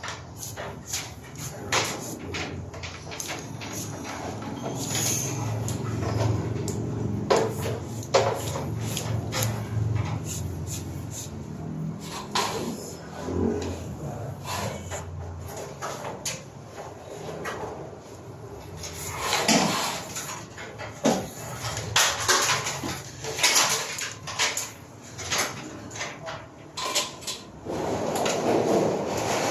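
Cables rustle and knock against each other as they are pulled and handled.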